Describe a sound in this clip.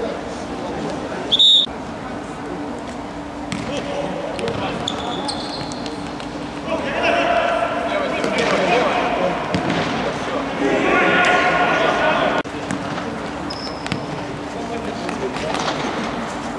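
Players' shoes squeak and thud on a hard indoor court.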